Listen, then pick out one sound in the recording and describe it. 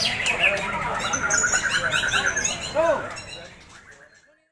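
Caged songbirds chirp and trill rapidly close by.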